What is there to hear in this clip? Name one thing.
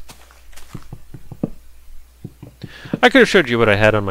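A video game character chops at a tree trunk with short knocks.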